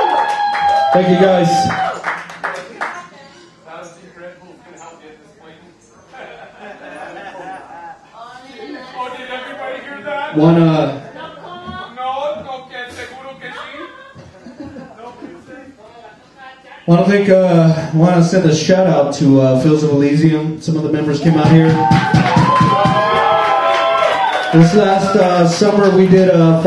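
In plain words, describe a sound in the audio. A man talks and shouts into a microphone over loudspeakers in an echoing room.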